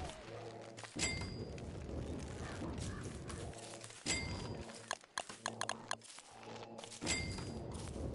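A game's menu gives short chimes.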